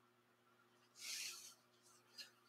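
A ruler slides softly across cloth.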